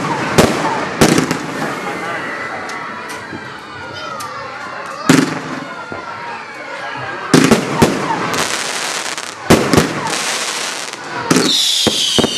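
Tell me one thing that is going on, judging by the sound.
Fireworks bang loudly outdoors, one after another.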